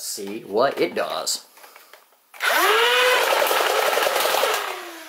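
An electronic toy plays quacking and squawking sounds through a small, tinny speaker.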